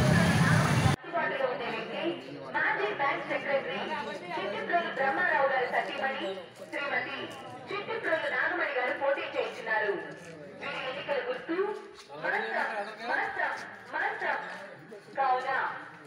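A man speaks steadily and clearly, close to a microphone.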